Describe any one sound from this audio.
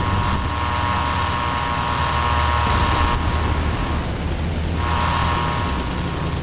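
A propeller plane's engine drones steadily and loudly.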